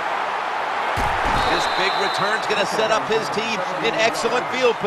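A stadium crowd cheers louder.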